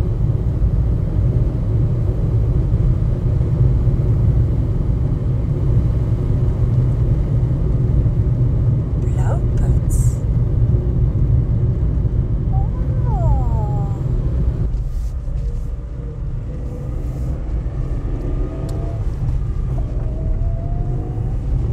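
A car engine hums and tyres roll steadily over the road.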